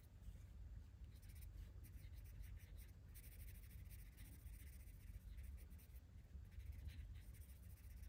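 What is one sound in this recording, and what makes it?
A coloured pencil scratches softly on paper in quick strokes.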